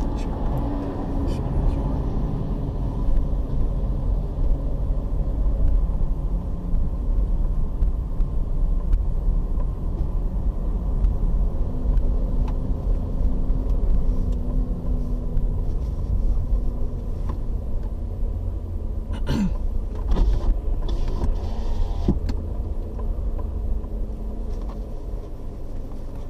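A car drives along a tarmac road, its engine and tyre rumble heard from inside the car.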